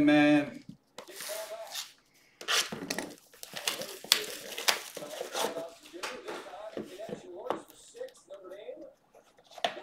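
Cardboard boxes rustle and scrape as hands handle them.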